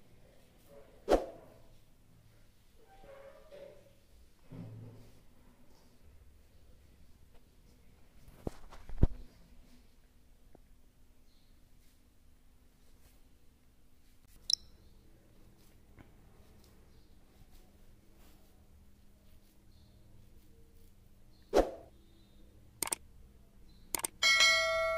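Hands squeeze and crumble a dry, crumbly mixture.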